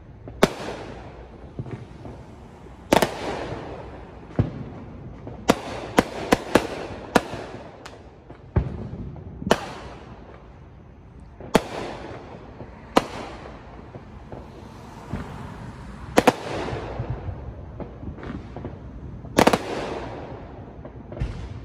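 Fireworks burst with sharp bangs that echo away into the night.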